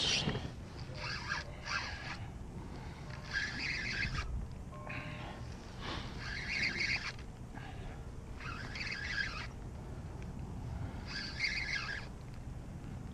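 A fishing reel's drag buzzes in short repeated bursts.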